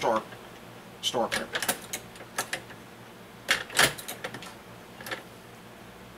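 Metal parts click and clack as a hand-operated press is worked.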